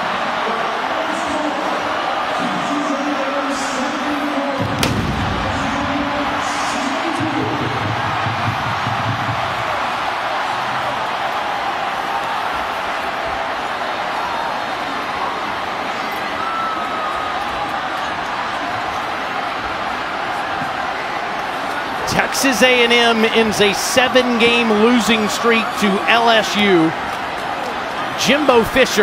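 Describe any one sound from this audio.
A large stadium crowd cheers and roars.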